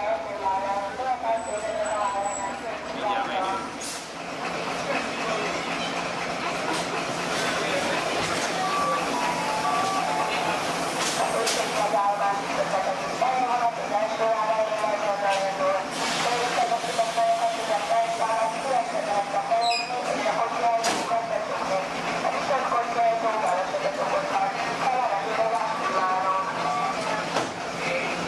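Children chatter and call out close by.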